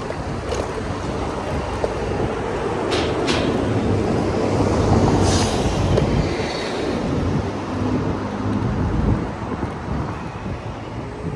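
Tyres hum on a paved road.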